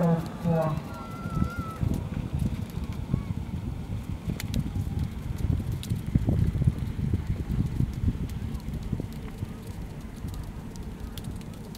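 Wind rumbles and buffets across open ground.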